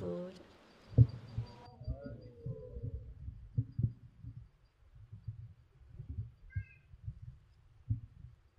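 A microphone thumps and rustles as it is handled and moved.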